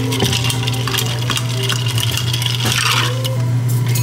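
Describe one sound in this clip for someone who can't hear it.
A spoon stirs ice in a glass.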